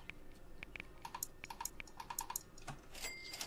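An electronic card terminal beeps with each key press.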